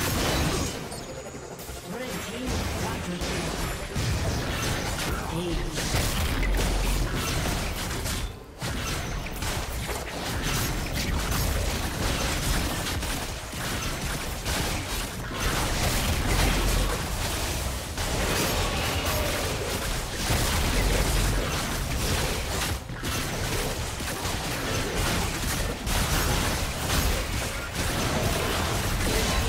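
Video game combat effects crackle, whoosh and burst.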